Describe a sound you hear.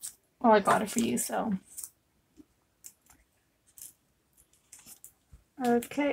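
Paper crinkles softly as it is folded by hand.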